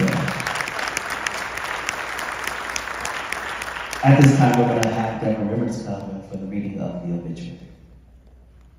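A man speaks through a microphone in an echoing hall.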